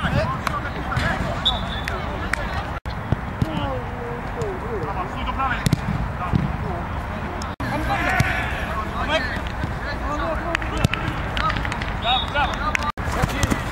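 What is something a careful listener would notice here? Men shout and call out across an outdoor pitch.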